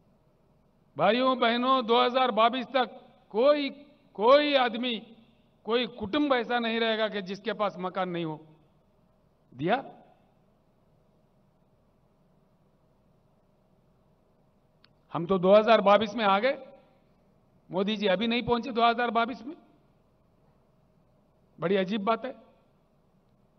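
An elderly man speaks forcefully into a microphone over loudspeakers, with long pauses.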